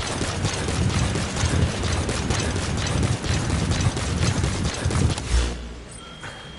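Heavy footsteps pound quickly on a hard surface, loud and rushing.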